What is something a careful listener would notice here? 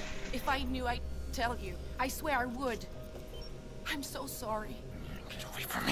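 A young woman speaks pleadingly and upset, close by.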